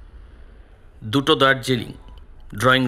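A man speaks close by into a two-way radio in short, firm bursts.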